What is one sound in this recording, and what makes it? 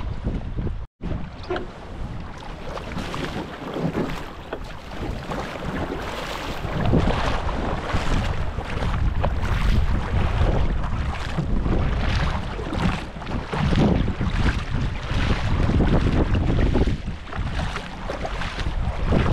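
A double-bladed paddle splashes into shallow water in steady strokes.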